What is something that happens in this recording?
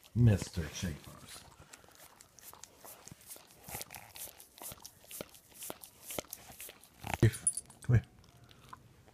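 A dog sniffs and snuffles right up close.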